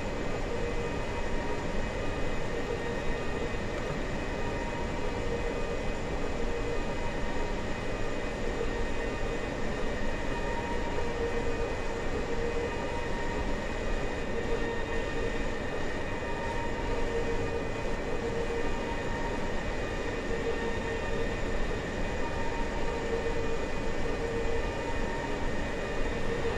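An electric train hums and rumbles steadily along the track.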